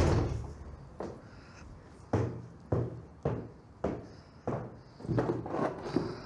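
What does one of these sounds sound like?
Footsteps climb wooden stairs with steady thuds.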